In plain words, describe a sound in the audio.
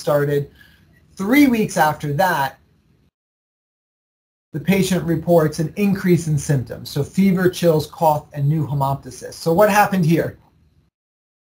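A man speaks calmly over an online call, with pauses.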